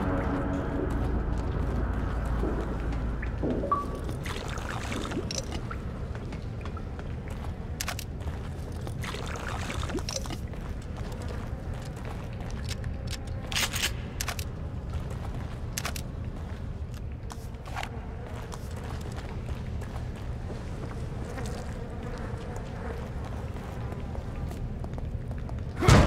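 Footsteps thud on hard floors and metal walkways.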